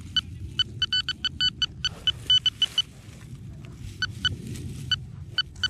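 A metal detector gives quick, repeated high beeps.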